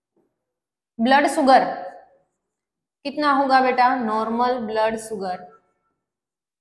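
A young woman speaks calmly and clearly, as if explaining to a class.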